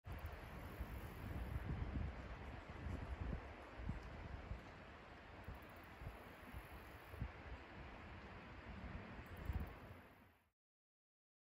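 A river flows and ripples over rocks.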